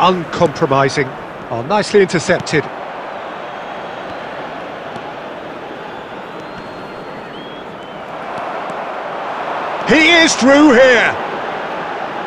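A large stadium crowd roars steadily, swelling louder toward the end.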